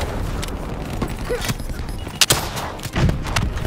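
A weapon clicks and clacks as it is handled.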